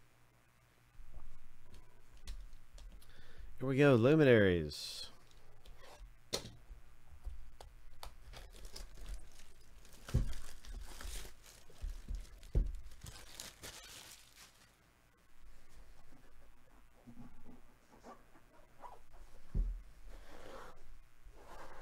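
Plastic wrapping crinkles and rustles as a box is handled.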